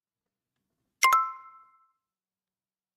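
A short bright chime rings.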